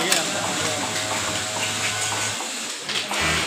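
A sewing machine motor hums nearby.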